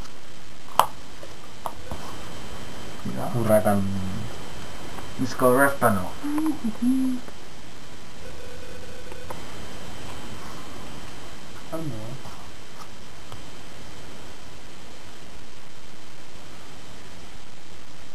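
Playing cards are shuffled and laid down softly.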